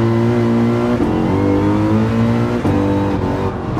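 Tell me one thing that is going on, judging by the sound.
A race car's gearbox shifts gears with quick breaks in the engine's roar.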